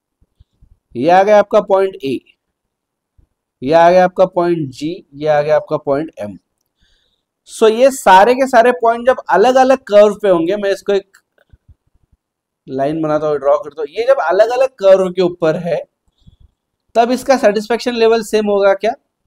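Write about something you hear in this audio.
A man speaks calmly and explains close to a microphone.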